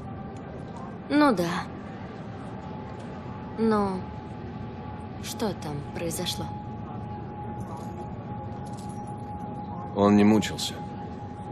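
A young woman answers quietly, close by.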